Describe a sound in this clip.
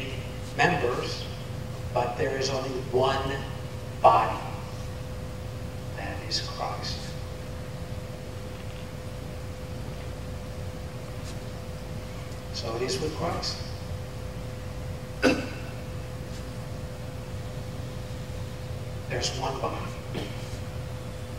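A man speaks in short bursts with pauses.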